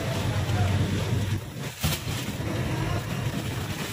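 A heavy sack thuds onto a metal floor.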